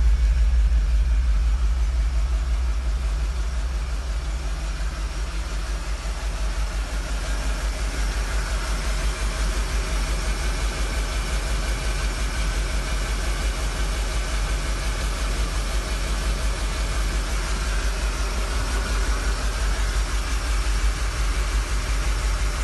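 A large engine idles with a deep, steady, throbbing rumble.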